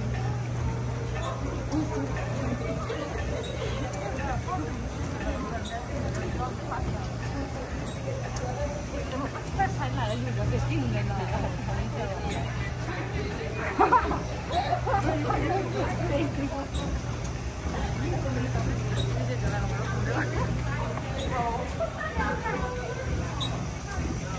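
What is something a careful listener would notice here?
A group of adults chats casually close by.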